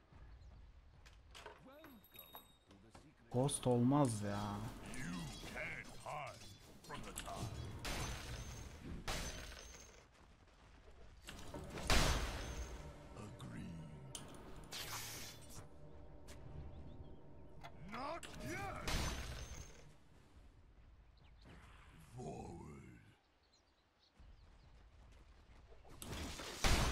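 Game battle effects crash and whoosh.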